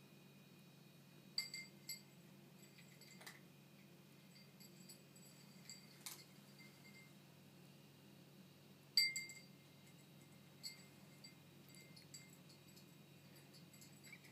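A cat purrs softly and steadily close by.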